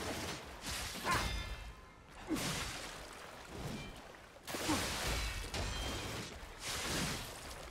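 Swords swing and whoosh through the air.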